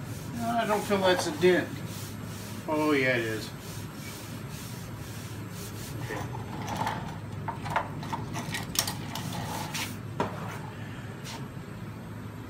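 A hand rubs and taps softly over a car's door.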